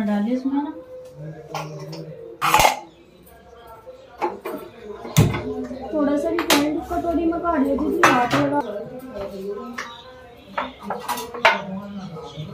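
Metal utensils clink and clatter on a stove.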